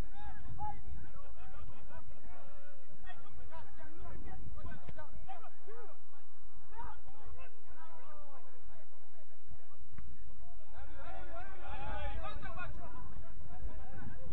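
Young players shout and call to each other across an open field outdoors.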